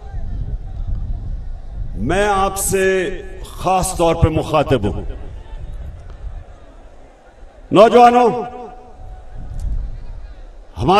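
A large crowd roars and cheers outdoors.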